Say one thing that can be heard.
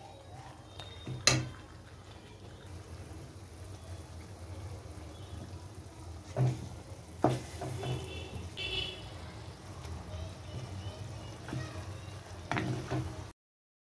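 A metal ladle scrapes and knocks against a pan.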